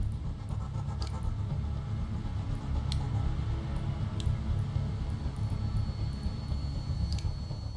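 Soft interface clicks sound as menu options are selected.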